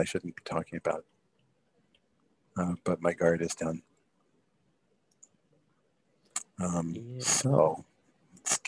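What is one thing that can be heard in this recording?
A man talks casually over an online call.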